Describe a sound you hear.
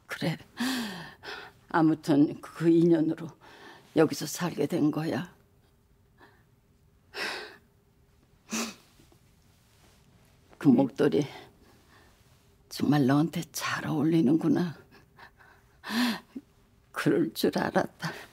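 An elderly woman speaks softly and emotionally, close by.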